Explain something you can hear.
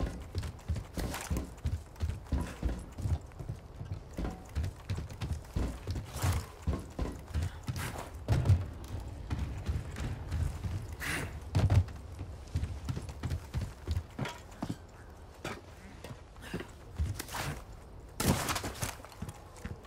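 Footsteps thud steadily on wooden boards and dirt.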